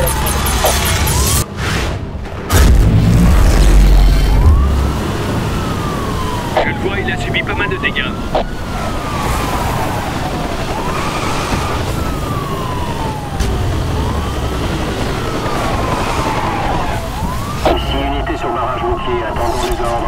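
A police siren wails in a rising and falling cycle.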